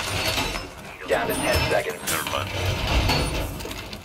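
A heavy metal panel clanks and rattles as it is hammered into place.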